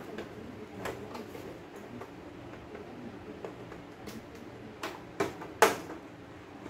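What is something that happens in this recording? Plastic clicks and knocks as a monitor is handled.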